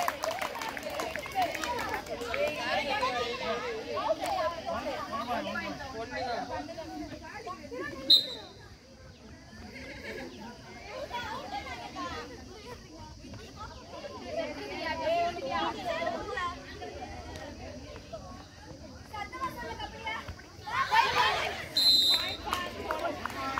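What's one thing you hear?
Young girls shout and cheer excitedly outdoors.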